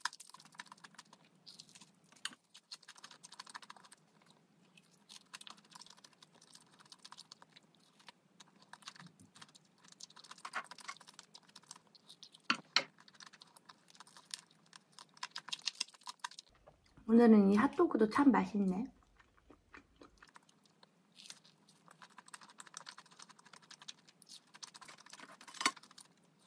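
A young woman bites and chews crunchy fried food close to a microphone.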